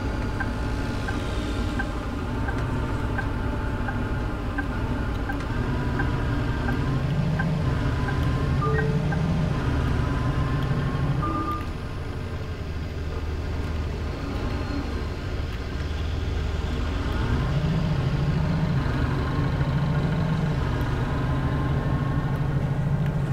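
A bus engine drones, growing louder as the bus speeds up and quieter as it slows.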